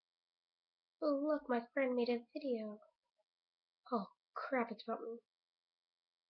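A young girl speaks close to the microphone in short bursts.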